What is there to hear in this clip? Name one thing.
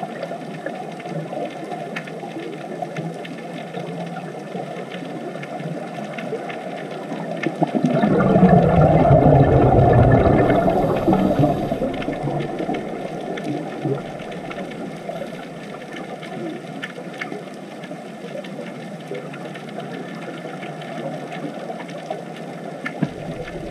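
Scuba divers' air bubbles gurgle and rumble underwater.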